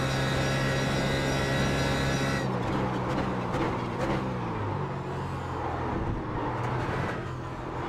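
A racing car engine roars at high revs, then drops in pitch as the car brakes.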